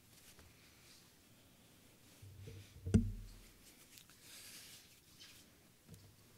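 Paper rustles close to a microphone.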